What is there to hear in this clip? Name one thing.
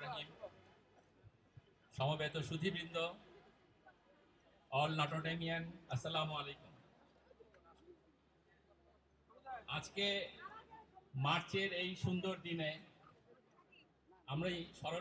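A man speaks with emphasis into a microphone over loudspeakers, in bursts with pauses.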